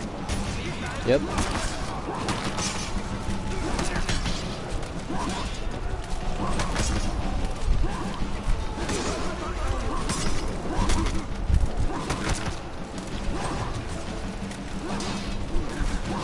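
Warriors shout and grunt as they fight.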